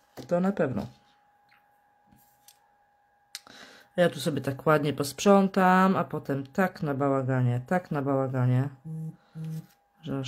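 Hands shuffle paper pieces on a table.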